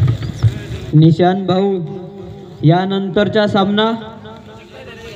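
A man chants loudly and rapidly over a loudspeaker.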